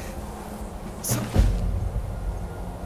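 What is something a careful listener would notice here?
A heavy thud lands as a body falls.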